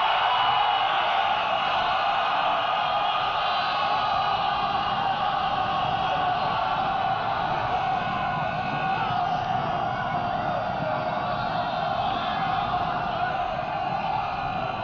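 A large crowd of men shouts and roars in a battle cry.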